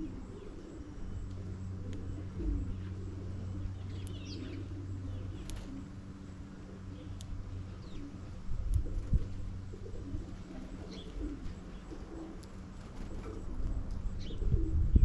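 Small birds peck and scratch at loose seed.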